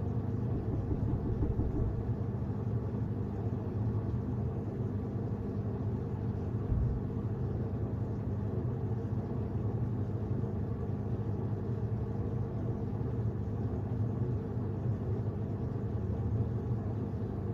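A washing machine drum hums and rumbles steadily.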